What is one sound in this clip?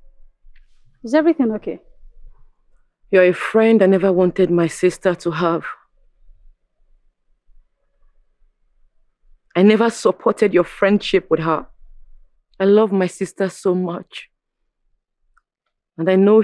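A young woman speaks firmly and with emotion, close by.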